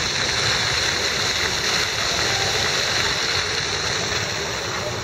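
A fountain splashes steadily.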